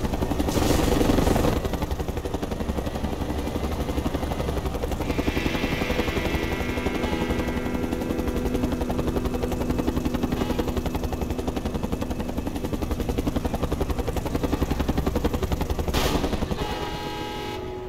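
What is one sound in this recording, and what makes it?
A helicopter's rotor thumps fast and steadily.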